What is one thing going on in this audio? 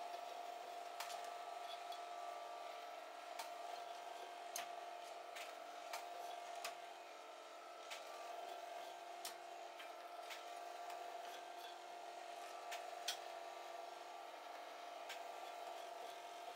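Wooden frames knock and clatter against a metal machine.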